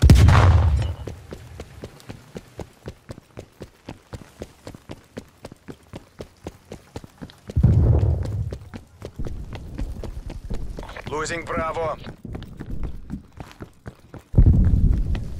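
Footsteps run quickly and steadily over hard ground.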